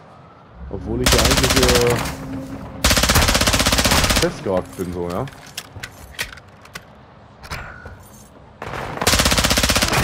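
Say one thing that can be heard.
A submachine gun fires rapid bursts.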